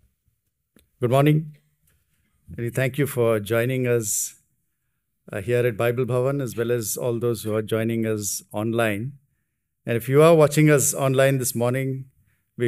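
A man speaks calmly into a microphone, heard through loudspeakers in an echoing hall.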